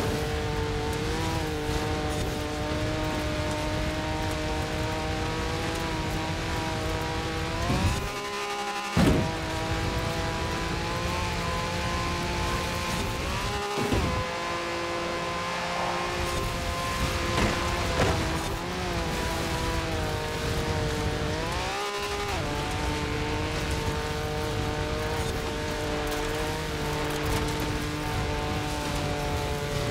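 Tyres rumble over rough ground.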